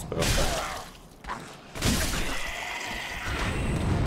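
Metal weapons clash and strike.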